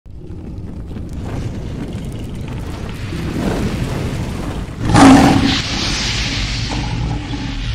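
Flames roar and whoosh.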